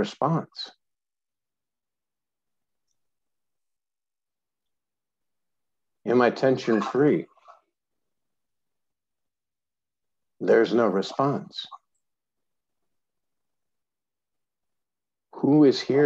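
A man speaks calmly in short phrases with long pauses, heard close through a microphone.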